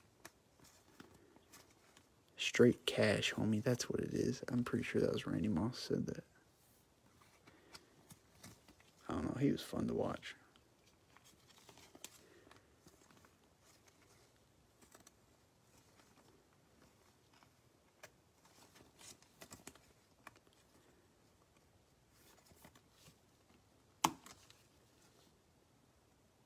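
A plastic sleeve crinkles softly as a card slides into it.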